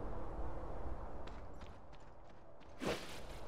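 Footsteps patter quickly on snow.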